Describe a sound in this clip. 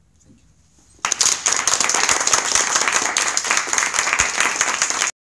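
Several people clap their hands in applause close by.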